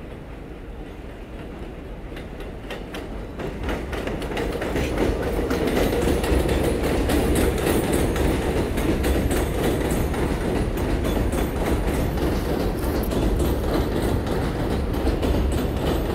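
A subway train approaches and roars past on the tracks, getting louder.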